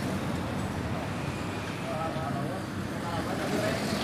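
A truck engine rumbles loudly as it passes close by.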